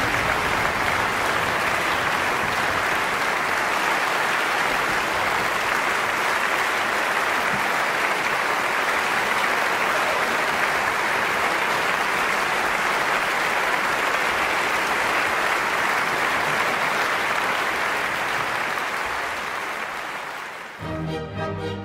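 A large audience applauds loudly in a big hall, then the applause fades.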